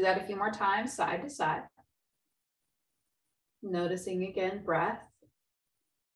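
A woman speaks calmly and clearly into a close microphone, pausing between phrases.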